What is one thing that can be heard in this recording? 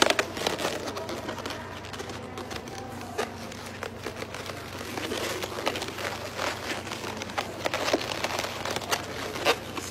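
Rubber balloons squeak and rub as they are twisted together.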